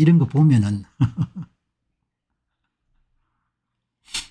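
A middle-aged man laughs briefly.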